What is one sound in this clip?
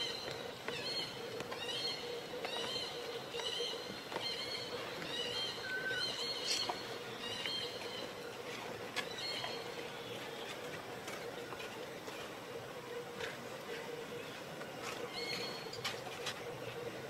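A baby macaque gives high-pitched squealing calls.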